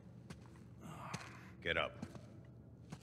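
A man speaks a short command in a low, firm voice.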